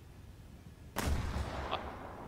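Jet landing gear thumps down onto a dirt runway.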